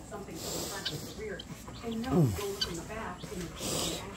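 Guinea fowl call outdoors.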